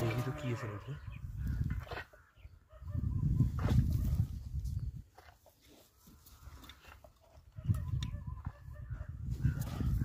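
Hands scrape and scratch dry soil off a metal pot.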